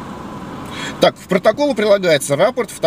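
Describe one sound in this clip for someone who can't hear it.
A man speaks close by through a car window.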